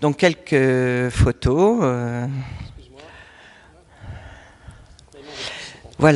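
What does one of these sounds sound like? An elderly man speaks with animation into a microphone, heard through a loudspeaker in a large room.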